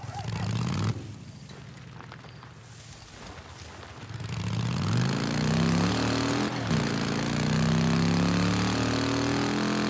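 A motorcycle engine roars and rises in pitch as the bike speeds up.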